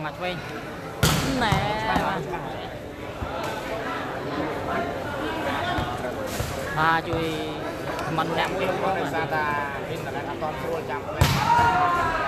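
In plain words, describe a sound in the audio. A ball is kicked with a sharp thump.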